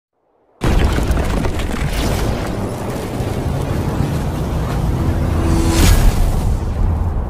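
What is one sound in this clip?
Electric energy crackles and hums with a deep rumble.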